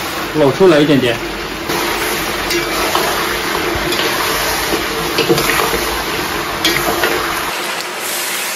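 Food sizzles loudly in a hot wok.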